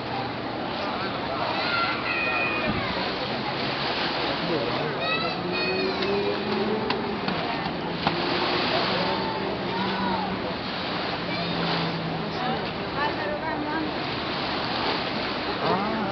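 A shovel scrapes through wet mud.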